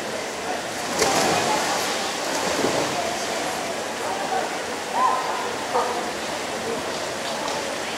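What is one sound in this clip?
A crowd chatters and calls out in an echoing hall.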